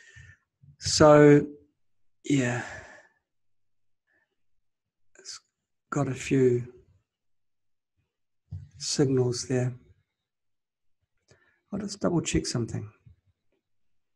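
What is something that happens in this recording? A man speaks calmly into a nearby microphone, in short phrases with pauses.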